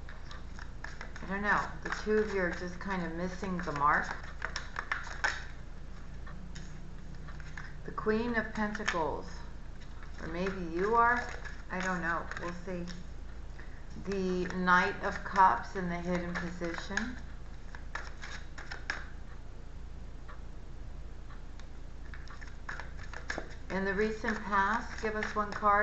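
Cards shuffle and rustle in a woman's hands.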